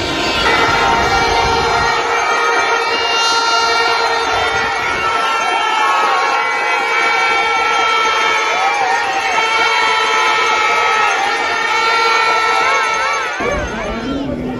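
Hand drums are beaten among a crowd of fans.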